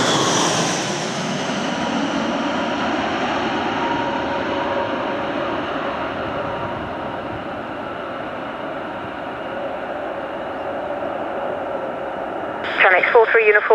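A jet airliner's engines roar loudly as it rolls along a runway.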